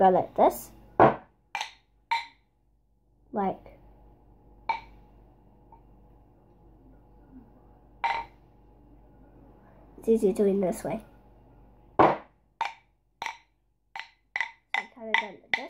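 Drumsticks click and tap sharply.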